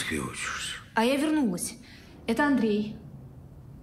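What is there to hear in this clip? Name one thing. A young woman speaks earnestly close by.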